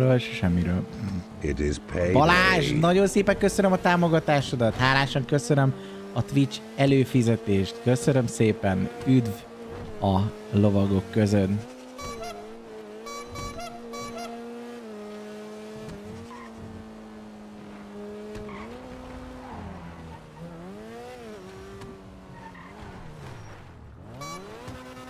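A car engine hums and revs as the car speeds along.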